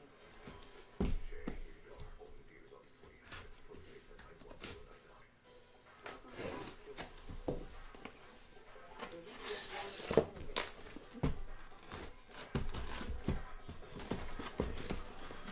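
A cardboard box scrapes and thumps against a table.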